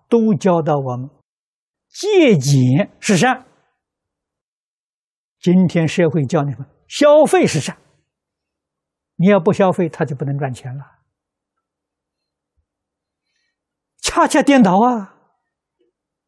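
An elderly man speaks calmly and with emphasis into a close microphone, in short phrases with pauses.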